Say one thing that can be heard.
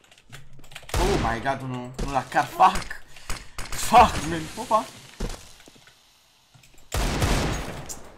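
A pistol fires a few shots.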